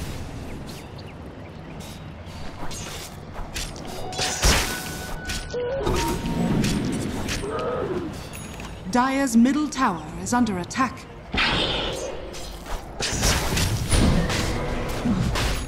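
Game spells crackle and blows strike in a fantasy battle.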